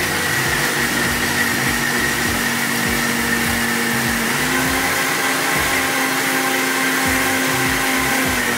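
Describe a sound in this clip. A mixer grinder whirs loudly.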